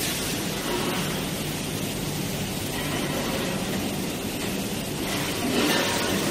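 A heavy machine hums and clanks steadily.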